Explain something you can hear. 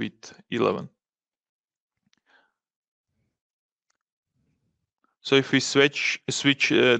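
A man speaks calmly through a microphone, as if on an online call.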